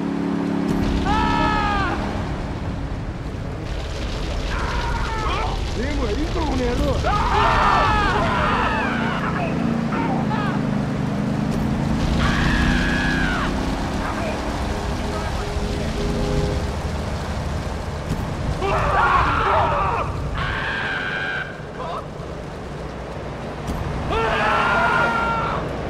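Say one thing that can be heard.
People scream in high, wavering cries.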